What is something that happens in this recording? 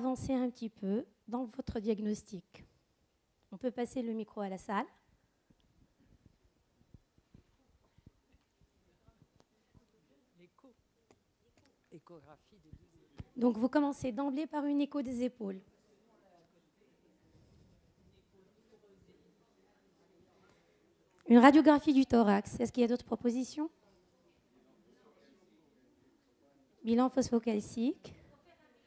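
An older woman speaks calmly, in short bursts with long pauses.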